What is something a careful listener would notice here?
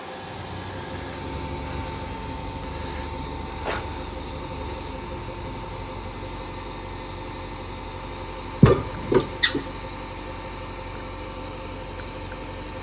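A heavy machine's diesel engine hums steadily nearby.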